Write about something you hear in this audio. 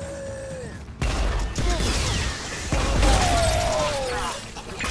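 A heavy gun fires with loud booming blasts.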